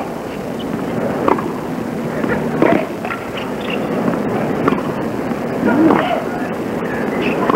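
A crowd murmurs softly in a large open stadium.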